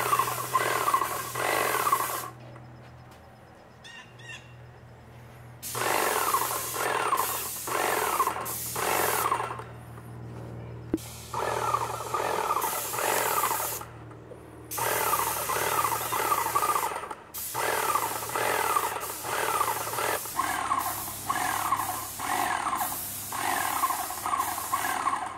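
A paint sprayer hisses in short bursts.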